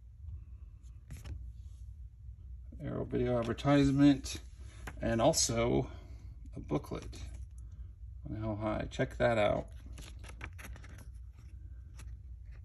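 Glossy paper cards rustle as they are flipped through.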